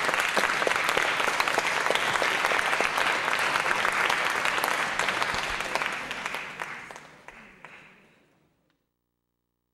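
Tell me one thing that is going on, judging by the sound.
An audience applauds in a large echoing hall, then the applause fades away.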